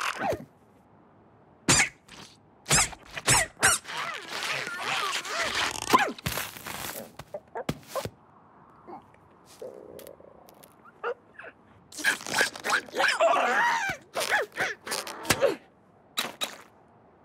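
Sharp thumps and knocks ring out in quick bursts.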